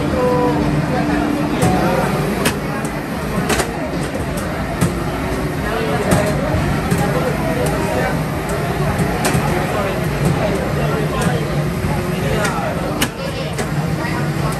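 Racing game engines roar loudly from loudspeakers.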